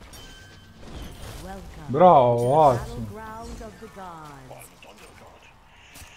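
Magic spells whoosh and burst during a fight.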